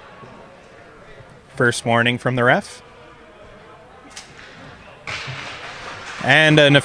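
Skates scrape and glide across the ice in a large echoing rink.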